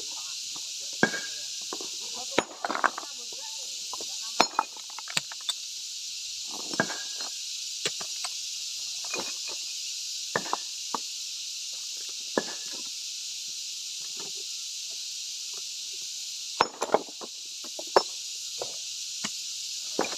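A sledgehammer strikes slabs of stone with sharp knocks.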